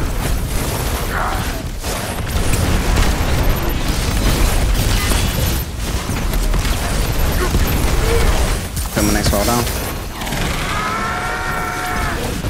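Rapid gunfire and explosions boom loudly.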